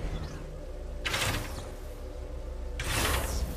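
Short bursts of hissing noise blast out.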